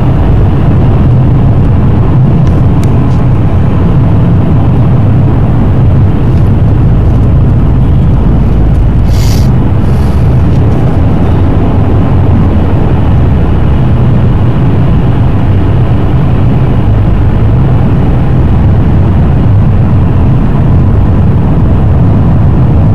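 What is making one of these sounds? Tyres roll on wet asphalt.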